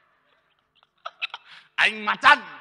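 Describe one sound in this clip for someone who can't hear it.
A young man laughs into a microphone.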